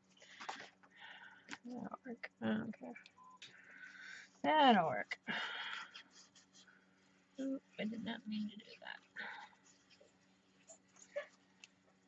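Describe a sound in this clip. A paintbrush swishes softly across paper.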